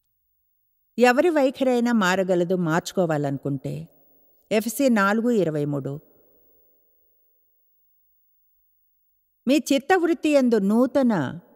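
A woman speaks calmly and clearly through a microphone.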